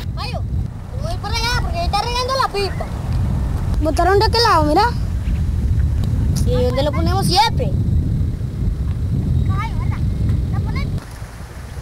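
A young boy speaks loudly and with animation, close by.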